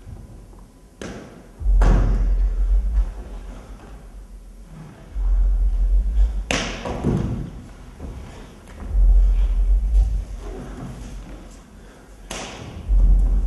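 Bare feet thud and slide on a wooden stage floor.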